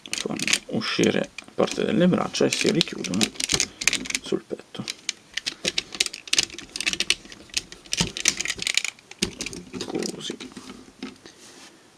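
Plastic parts click and snap as a toy figure is handled.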